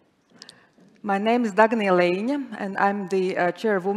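A woman speaks clearly into a microphone.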